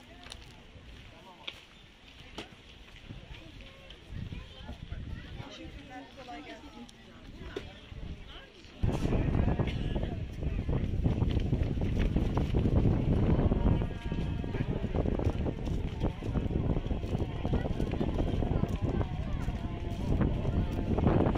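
A busy outdoor market crowd murmurs with many voices.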